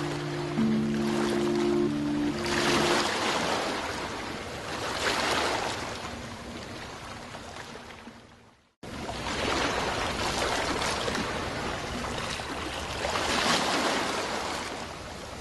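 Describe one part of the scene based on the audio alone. Waves wash softly onto a shore in slow swells.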